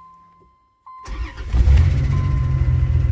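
A car engine cranks and starts.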